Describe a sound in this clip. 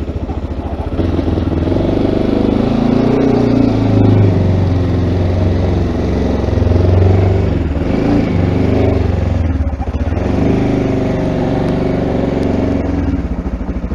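A motorcycle engine revs and rumbles louder as the motorcycle rides off.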